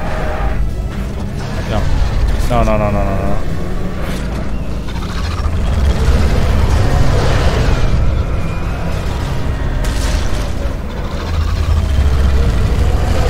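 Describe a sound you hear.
A vehicle engine rumbles low and steady as it drives over rough ground.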